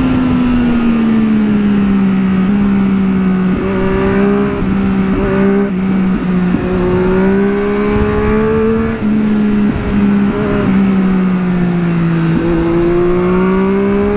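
A motorcycle engine hums steadily at high revs, rising and falling slightly with gear changes.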